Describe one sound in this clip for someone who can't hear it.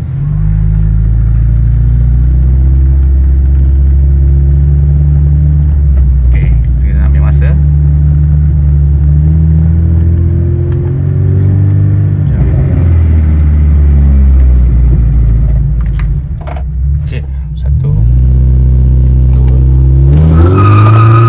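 A car engine hums steadily, heard from inside the cabin.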